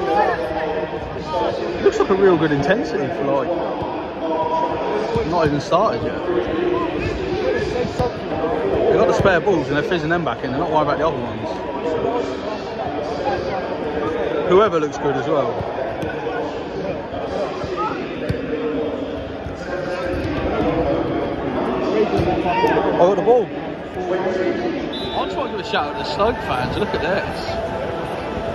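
A large crowd chatters and murmurs in an open-air stadium.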